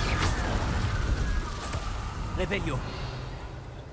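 Sparkling magic crackles and fizzes.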